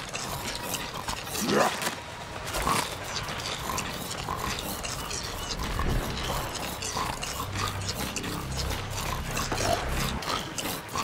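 Quick footsteps patter along the ground.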